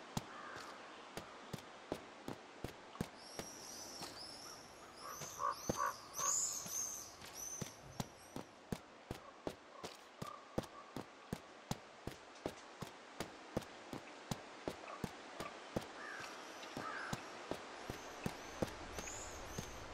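Footsteps crunch steadily over soft ground outdoors.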